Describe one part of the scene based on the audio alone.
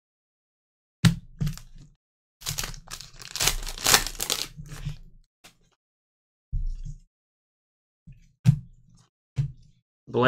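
Cards rustle and slide against each other as they are handled.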